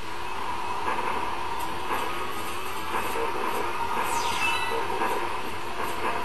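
Video game music plays steadily through a television speaker.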